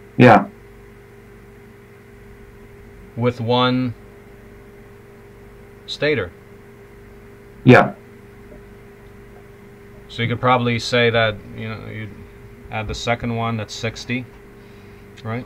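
A man speaks calmly in short bursts, heard through an online call.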